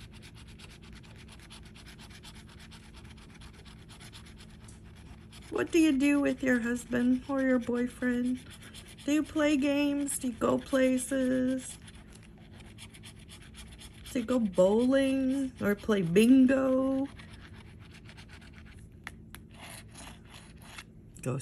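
A scraper tool scratches the coating off a scratch card.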